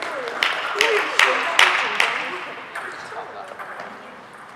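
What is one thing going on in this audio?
A table tennis ball clicks back and forth in a rally, echoing in a large hall.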